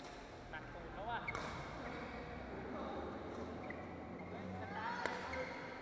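Sports shoes squeak sharply on a hard court floor.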